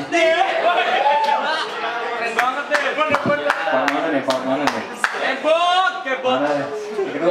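A young man sings loudly.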